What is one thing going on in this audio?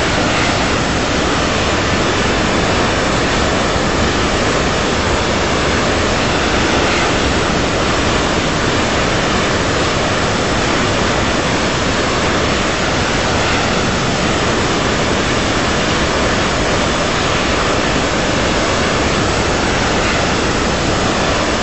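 Jet engines roar steadily as an airliner cruises.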